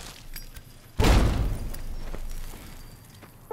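A stick of dynamite explodes with a deep boom.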